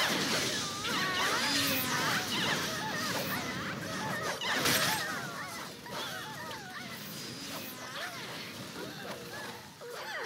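Magic spells crackle and whoosh in a busy fight.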